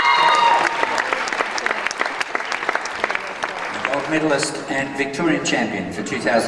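A group of girls clap their hands in a large echoing hall.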